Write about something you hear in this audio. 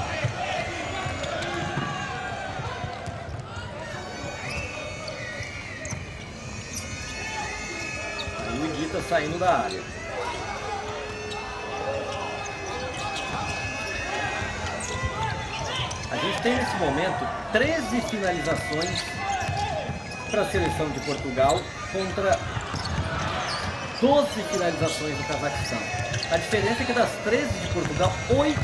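A crowd cheers and shouts in an echoing indoor arena.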